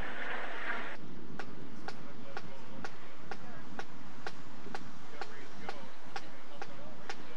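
A marching snare drum taps a beat outdoors.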